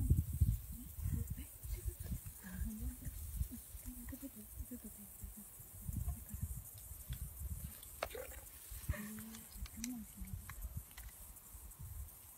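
An older man speaks calmly outdoors.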